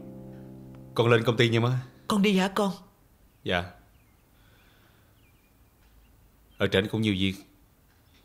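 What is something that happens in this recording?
A young man speaks calmly nearby.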